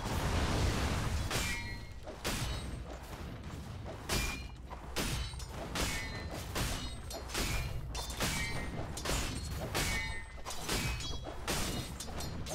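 Game battle effects clash and crack in quick bursts.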